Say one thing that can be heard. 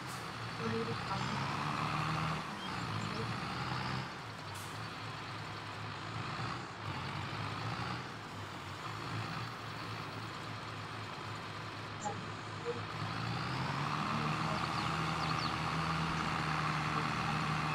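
A bale loader clanks as it picks up a hay bale.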